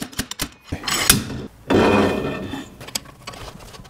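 A metal axle scrapes as it slides out of its housing.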